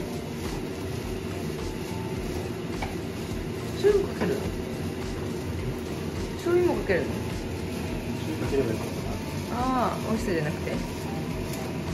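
A wooden spatula scrapes and stirs in a frying pan.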